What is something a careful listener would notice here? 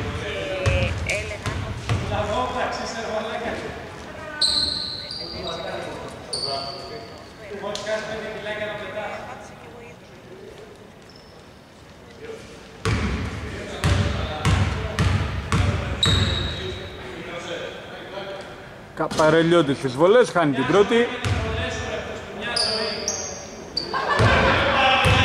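Men call out to each other across the court.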